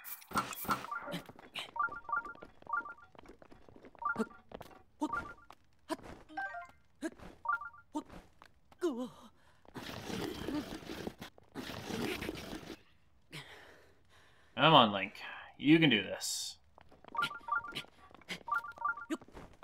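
Light footsteps scrape and tap on rock during a climb.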